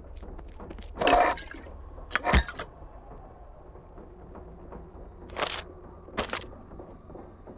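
Short clinking and rustling sounds play as items are picked up and dropped.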